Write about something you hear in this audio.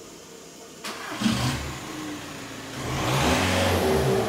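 A car engine revs loudly through its exhaust.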